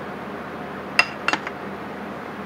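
A metal pipe clanks down onto a metal table.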